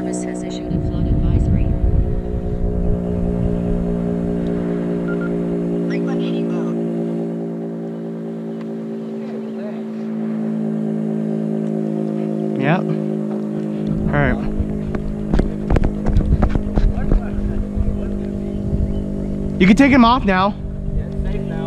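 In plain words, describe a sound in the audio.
A drone's propellers hum with a steady, high buzz close by.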